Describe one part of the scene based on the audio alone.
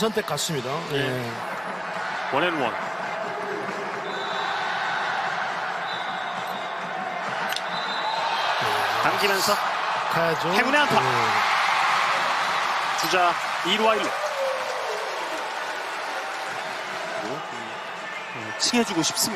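A large stadium crowd murmurs and cheers, swelling loudly for a while.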